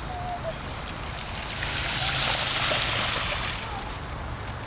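Bicycle tyres splash through a shallow puddle.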